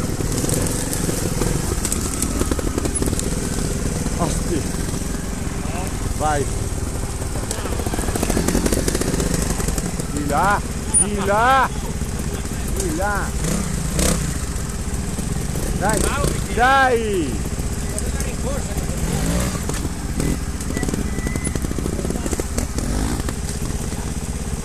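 A trials motorcycle engine revs in short bursts.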